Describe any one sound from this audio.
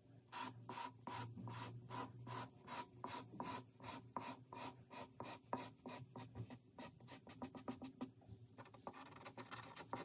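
A marker scratches rapidly back and forth on paper.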